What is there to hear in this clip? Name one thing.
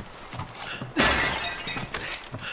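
A clay pot shatters loudly.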